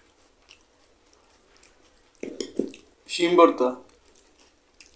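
Curry slops from a bowl onto a plate.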